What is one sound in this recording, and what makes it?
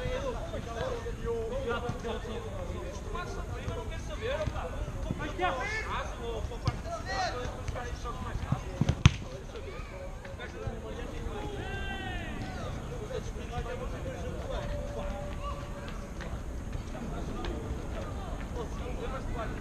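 Young men shout and call to each other across an open pitch.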